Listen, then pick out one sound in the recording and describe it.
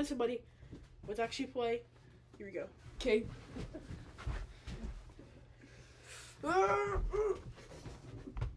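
A young man calls out with animation close by.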